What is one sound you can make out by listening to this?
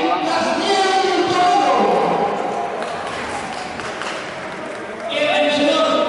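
Men talk loudly nearby in an echoing hall.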